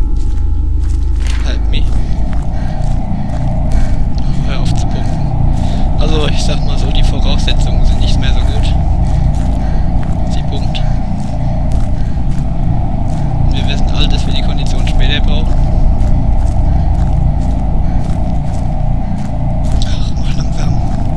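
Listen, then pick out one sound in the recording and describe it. Footsteps crunch steadily over leaves and dirt.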